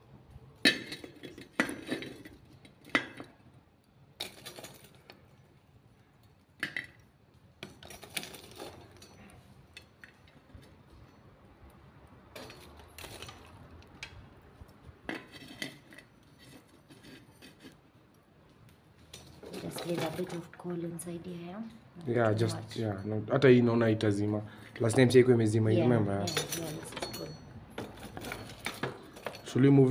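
A metal spatula scrapes and clinks against charcoal in a metal stove.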